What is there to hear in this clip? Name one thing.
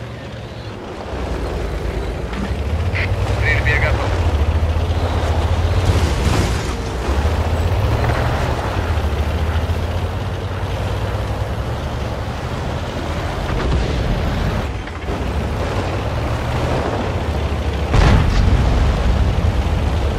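A tank's tracks clatter and squeak over the ground.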